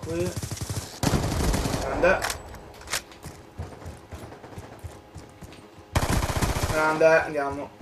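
Rapid gunfire bursts loudly from a video game.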